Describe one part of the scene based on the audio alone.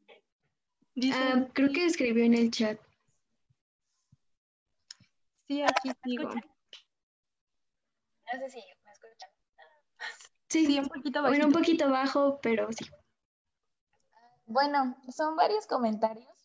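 Another young woman talks with animation over an online call.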